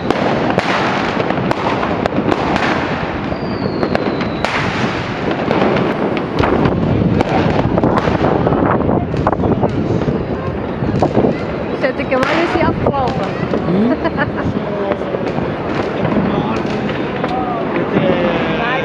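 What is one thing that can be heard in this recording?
Firecrackers bang and crackle repeatedly outdoors, near and far.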